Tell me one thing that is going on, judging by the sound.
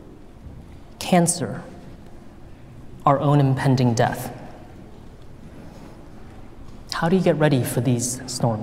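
A young man speaks calmly and slowly into a microphone, with pauses.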